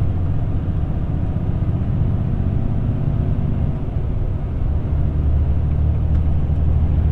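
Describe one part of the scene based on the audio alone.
Wind rushes past the moving vehicle.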